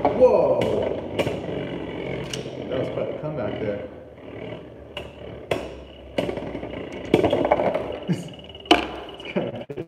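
A spinning top whirs and rattles around a plastic arena.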